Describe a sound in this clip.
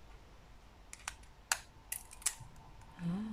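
A plastic object taps and clicks as it is handled.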